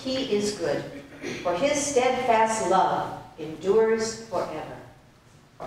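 A woman reads out calmly through a microphone in an echoing hall.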